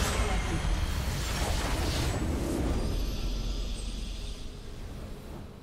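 A loud game explosion booms and rumbles, then slowly fades.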